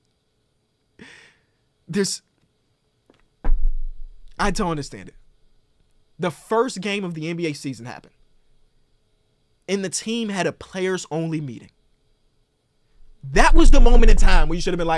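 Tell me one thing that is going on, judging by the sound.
A young man talks with animation close to a microphone, in short bursts with pauses.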